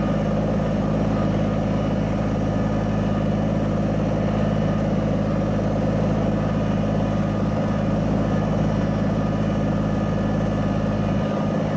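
Tyres crunch slowly over gravel.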